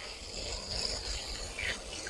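An egg cracks.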